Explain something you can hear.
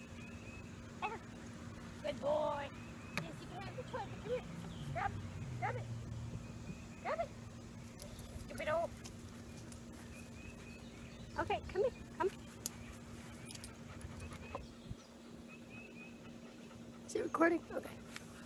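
A young woman calls out short commands to a dog nearby.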